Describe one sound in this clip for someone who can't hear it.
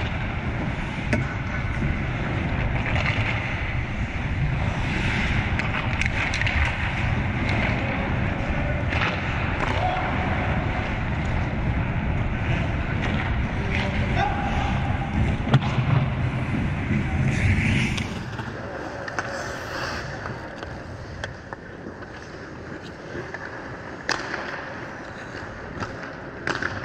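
Skate blades scrape and hiss on ice in a large echoing arena.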